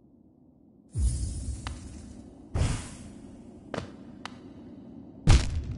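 Sharp game sound effects whoosh and thud as a small character dashes and lands.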